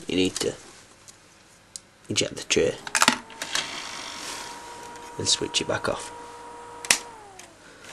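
Plastic buttons and parts click and clatter.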